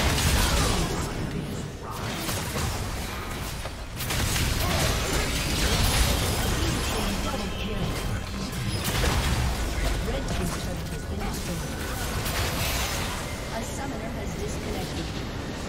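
Game spell effects and impacts crackle and boom in a busy battle.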